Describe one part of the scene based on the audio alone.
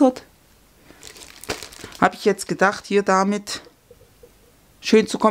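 Sheets of paper rustle as hands handle them.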